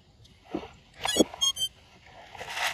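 A radio controller beeps a few short tones.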